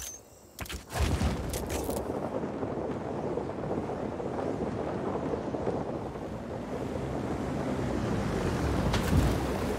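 Wind rushes loudly past during a parachute glide.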